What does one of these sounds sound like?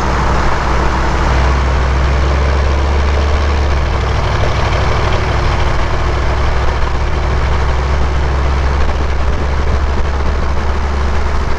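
Tyres hum on open highway pavement.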